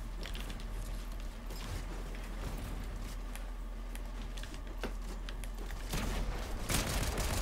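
Sharp clicks and clacks of building pieces snapping into place come in quick bursts.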